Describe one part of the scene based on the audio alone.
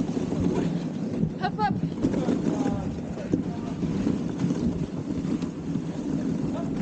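Sled runners scrape and hiss steadily over snow.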